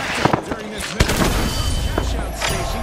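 A smoke grenade bursts and hisses.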